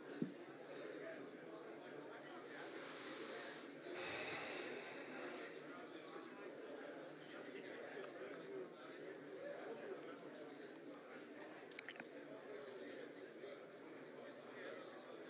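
An elderly man speaks calmly through a microphone in a large room.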